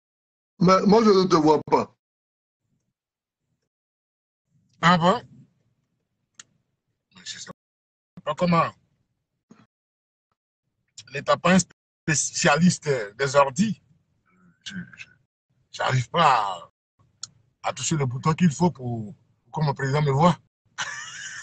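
A man speaks close to the microphone in short bursts, heard through an online call.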